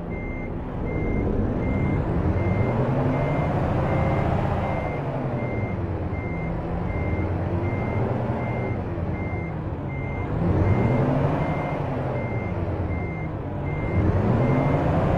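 A truck engine revs up and down.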